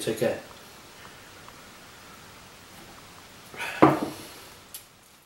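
A man sips a hot drink.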